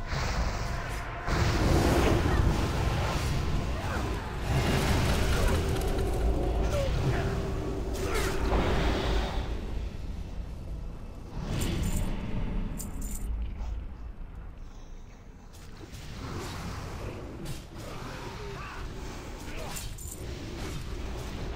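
Game combat effects clash and burst with spell sounds.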